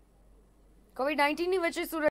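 A young woman reads out the news calmly into a microphone.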